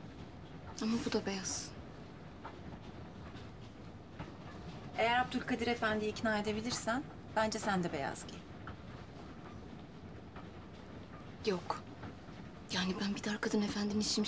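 A young woman speaks softly and calmly.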